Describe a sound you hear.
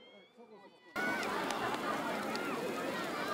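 A large bonfire roars and crackles outdoors.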